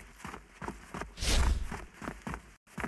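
A sword swooshes through the air with a loud burst.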